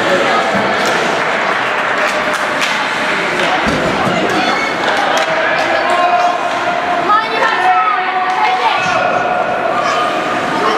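Hockey sticks click against the puck.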